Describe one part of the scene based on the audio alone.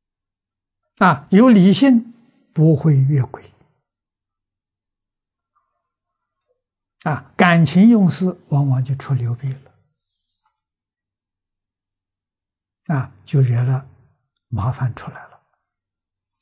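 An elderly man speaks calmly and slowly in short phrases into a close microphone, with long pauses between them.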